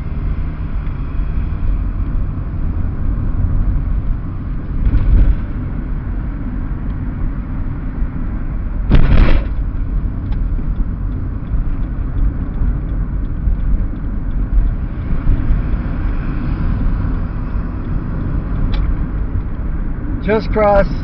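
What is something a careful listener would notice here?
Tyres roll over the road with a low rumble.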